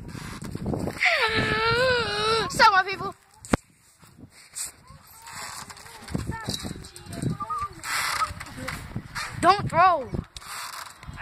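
A boy laughs and squeals loudly close by.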